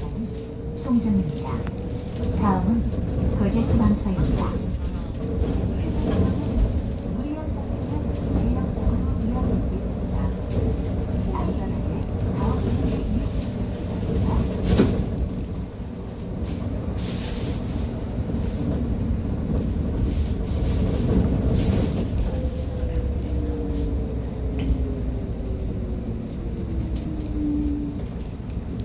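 A bus engine rumbles steadily while the bus drives.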